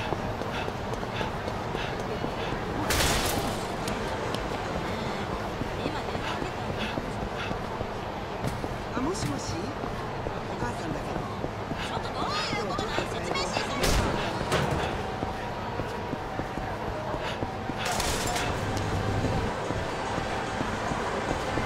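Quick footsteps run on a hard pavement.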